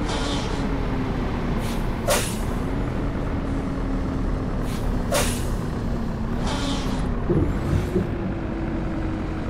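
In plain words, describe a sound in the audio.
Truck tyres roll and rumble on the road.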